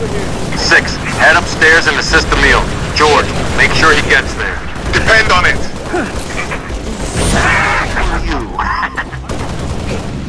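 Rapid weapon fire crackles and bangs in bursts.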